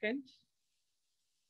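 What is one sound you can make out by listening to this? A woman speaks briefly into a headset microphone.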